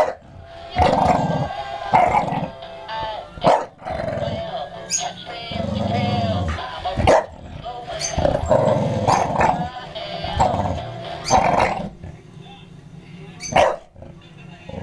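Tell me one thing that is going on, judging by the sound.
A dog barks in short, loud bursts.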